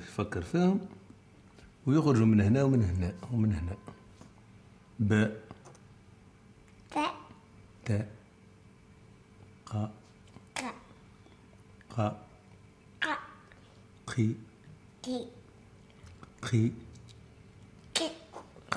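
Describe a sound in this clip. A young boy speaks up close.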